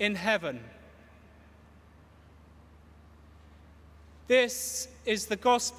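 A middle-aged man sings a chant into a microphone in a large echoing hall.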